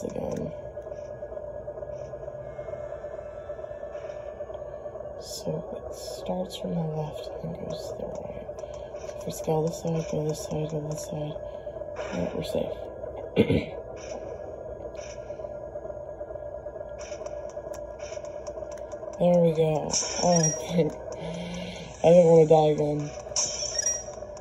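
Tinny video game music plays through a small handheld speaker.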